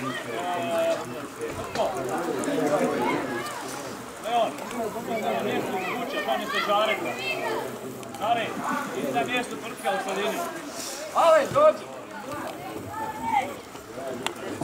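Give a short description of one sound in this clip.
Boys shout and call to each other outdoors across an open field.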